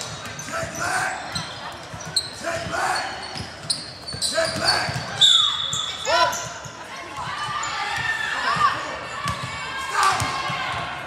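Voices of children and adults call out in a large echoing gym.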